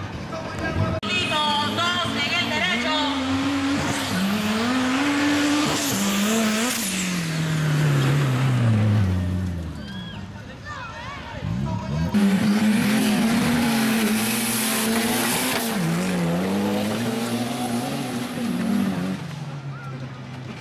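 An off-road vehicle's engine revs hard and roars as it accelerates away.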